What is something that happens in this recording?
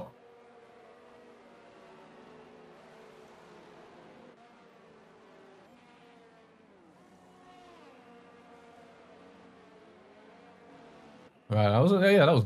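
A racing car engine hums and whines steadily at low volume.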